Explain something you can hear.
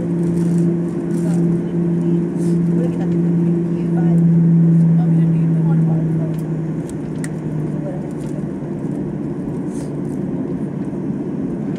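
A plane rumbles along the runway as it taxis.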